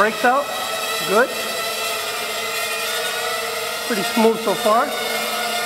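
A small drone's motors whine steadily, briefly surging up and down in pitch now and then.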